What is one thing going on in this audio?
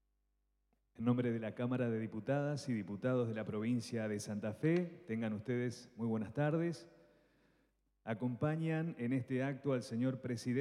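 A man speaks steadily into a microphone, heard over loudspeakers in a large echoing hall.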